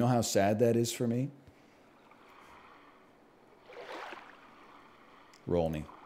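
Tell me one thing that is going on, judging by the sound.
A man speaks calmly and closely into a headset microphone.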